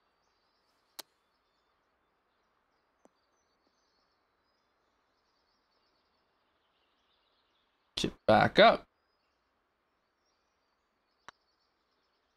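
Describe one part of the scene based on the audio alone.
A golf club strikes a ball with a sharp click.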